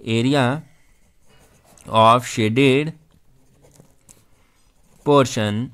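A marker pen squeaks and scratches on paper.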